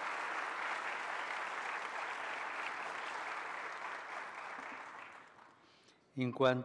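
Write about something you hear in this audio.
An audience applauds in a large hall, then fades.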